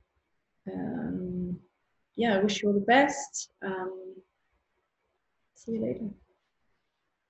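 A woman speaks calmly and closely into a microphone, in short phrases with pauses.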